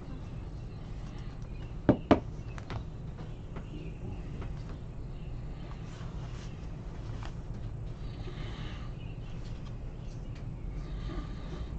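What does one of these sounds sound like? Trading cards rustle and snap as hands flip through them.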